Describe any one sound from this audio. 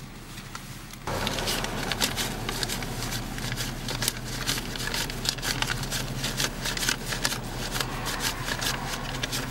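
Banknotes rustle and flick as a man counts them.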